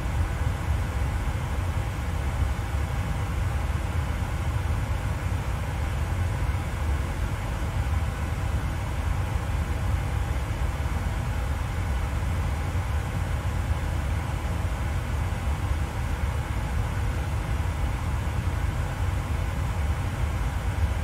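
Jet engines drone with a steady low rumble.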